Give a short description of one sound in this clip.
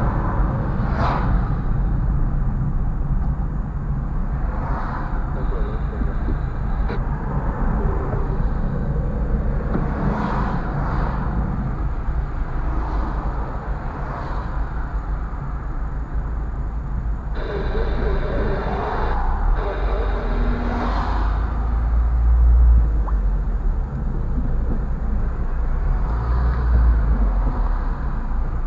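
Tyres roll over the road surface.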